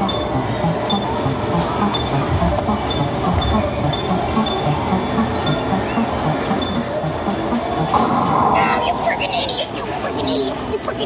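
An arcade machine plays loud, upbeat electronic music with a steady beat.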